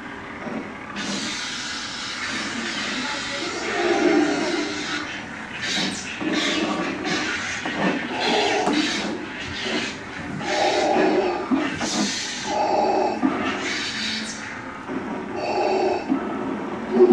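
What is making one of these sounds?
A toy lightsaber hums and swooshes as it is swung.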